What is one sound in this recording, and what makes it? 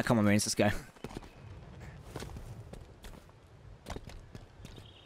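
Footsteps crunch on grass and gravel.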